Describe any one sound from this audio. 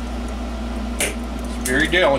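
Needle-nose pliers click against a metal capacitor can.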